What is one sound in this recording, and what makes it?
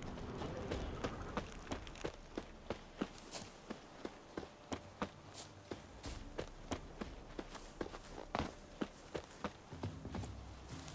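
Footsteps crunch through grass at a steady walking pace.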